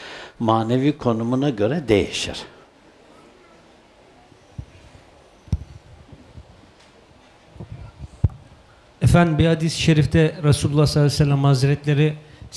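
An elderly man speaks slowly and with feeling into a microphone.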